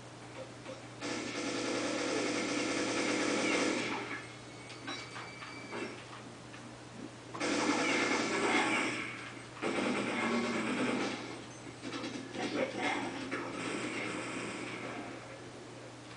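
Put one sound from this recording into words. Gunfire and game sounds play from a loudspeaker.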